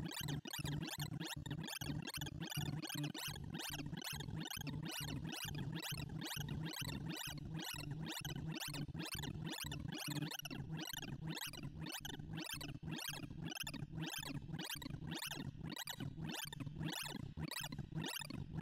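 Rapid electronic bleeps chirp in quick succession, changing pitch.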